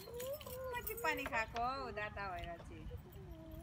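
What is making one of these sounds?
A young child babbles and chatters nearby.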